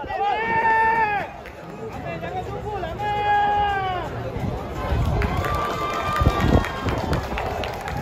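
Spectators shout and cheer loudly outdoors.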